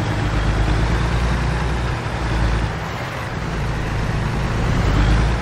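A truck's diesel engine rumbles steadily at low speed.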